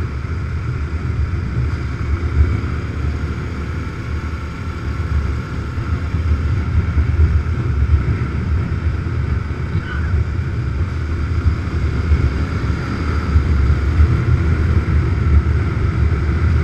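A motorcycle engine hums steadily up close while riding.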